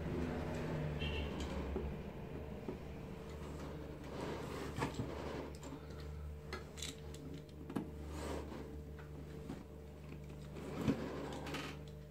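A wooden loom knocks and thuds as the weaving goes on.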